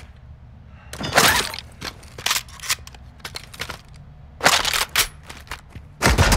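A rifle clatters as it is picked up and handled.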